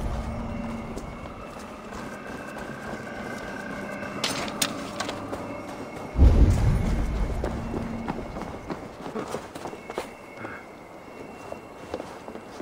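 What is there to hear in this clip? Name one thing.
Footsteps tread on soft ground.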